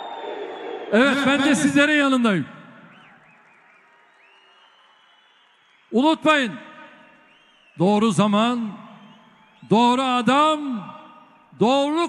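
A crowd chants loudly in rhythm.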